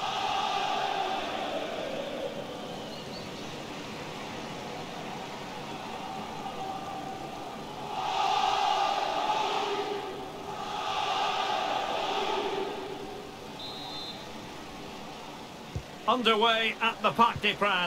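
A stadium crowd cheers and murmurs in a large open arena.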